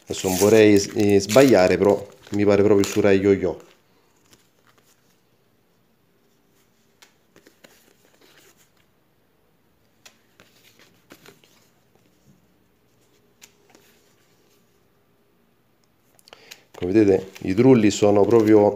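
Stiff paper stickers rustle and flick softly as they are handled.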